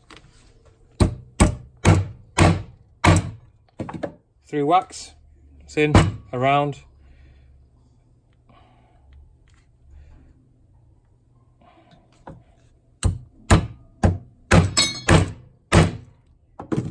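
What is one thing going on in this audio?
A hammer taps sharply on metal several times.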